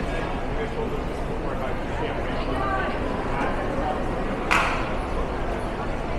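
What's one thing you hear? A crowd of people chatters in a large, echoing indoor hall.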